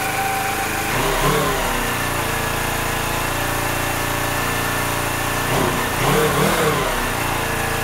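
A motorcycle engine revs up briefly, then settles back.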